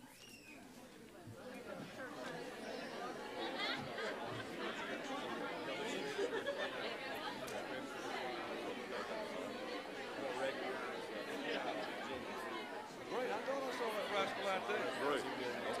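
A crowd of people chat and greet each other in a large echoing room.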